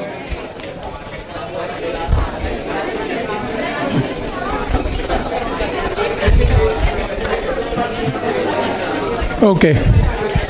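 A whiteboard eraser rubs briskly across a board.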